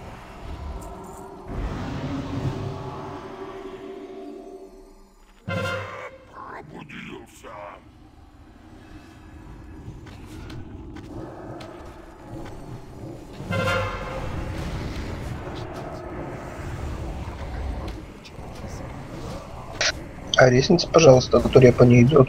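Game combat sounds of spells and blows play throughout.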